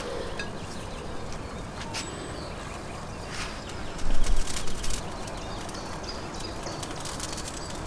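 A metal spatula scrapes and clinks against a plate.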